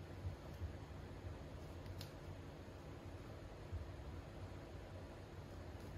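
Paper rustles and crinkles as it is folded by hand.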